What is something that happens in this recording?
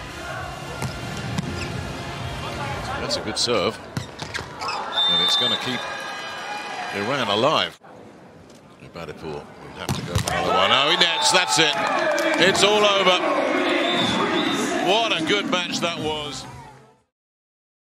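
A crowd cheers and roars in a large echoing arena.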